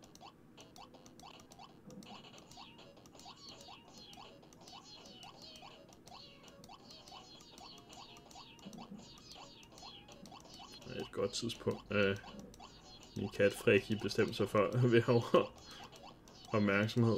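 A video game plays short rising blips in a quick, steady rhythm.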